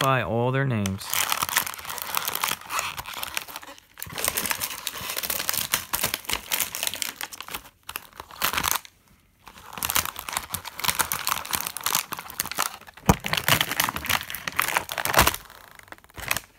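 Plastic packaging crinkles and crackles close by.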